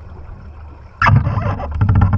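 Water rushes and splashes loudly right up close.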